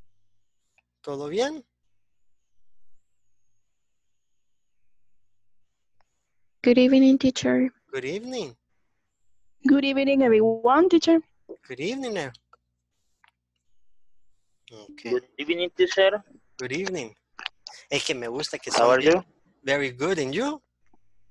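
A man with a headset talks over an online call, in bursts with pauses.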